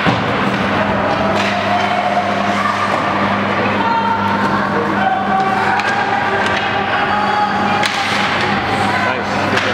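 Hockey sticks clack against the puck and the ice.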